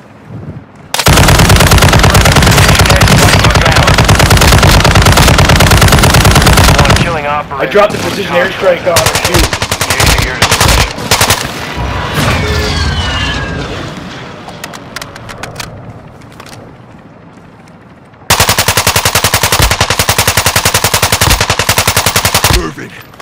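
A machine gun fires long, rapid bursts close by.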